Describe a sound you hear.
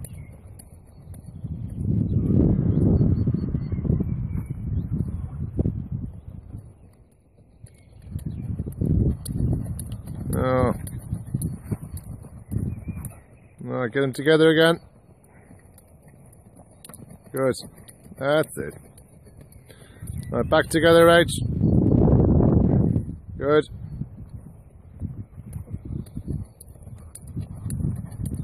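A horse's hooves thud softly on sand as it canters.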